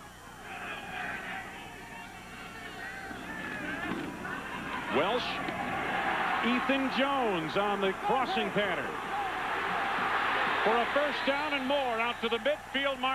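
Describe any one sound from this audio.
A large stadium crowd cheers and roars, growing louder.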